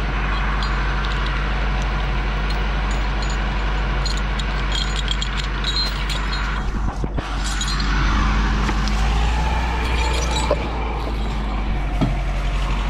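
A heavy machine's engine idles steadily nearby.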